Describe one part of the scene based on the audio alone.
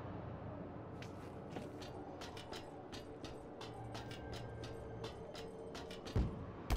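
Quick footsteps clank on a metal grate.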